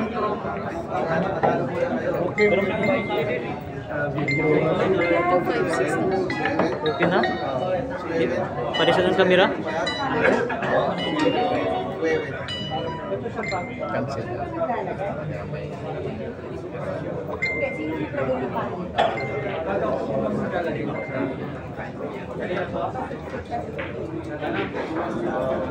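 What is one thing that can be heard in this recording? A crowd of people chatter in an echoing hall.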